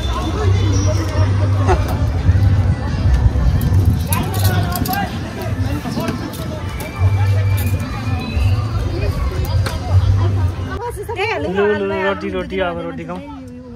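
Men and women chat casually nearby.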